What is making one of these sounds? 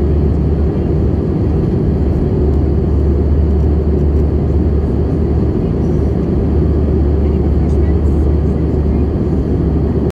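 Jet engines roar with a steady low drone inside an airliner cabin in flight.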